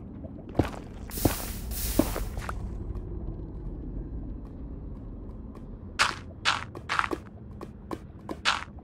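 Lava pops and crackles.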